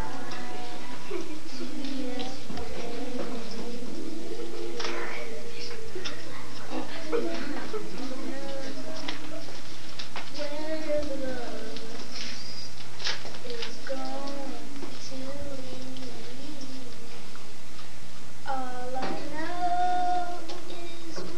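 A young boy speaks to the room, heard slightly distant in a small echoing room.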